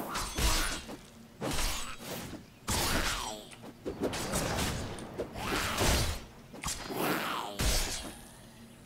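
Weapon blows strike with heavy thuds.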